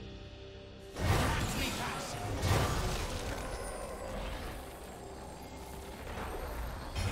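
Fantasy game combat effects whoosh, crash and clang in quick bursts.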